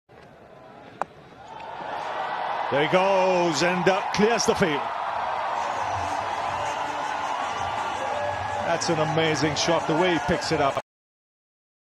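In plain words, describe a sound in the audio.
A crowd cheers loudly in a large stadium.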